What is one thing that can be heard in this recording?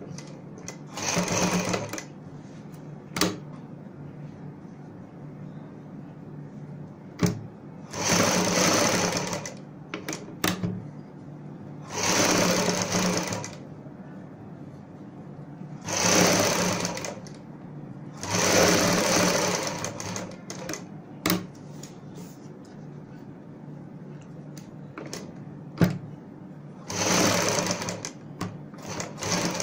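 A sewing machine runs in short whirring bursts.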